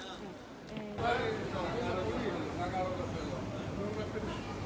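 A man talks nearby in a market crowd.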